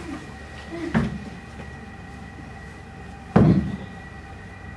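A chair knocks and thuds against the floor.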